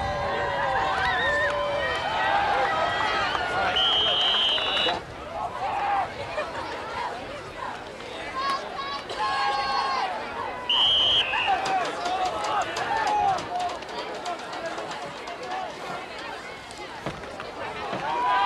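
Football players' pads and helmets thud together.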